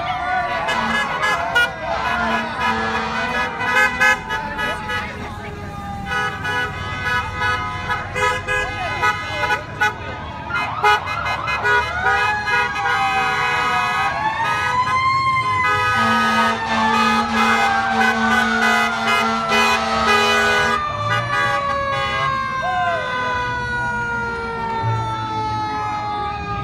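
Car horns honk repeatedly.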